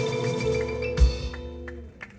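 A drum and cymbal crash once.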